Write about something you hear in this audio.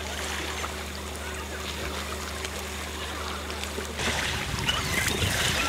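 Small waves lap gently nearby.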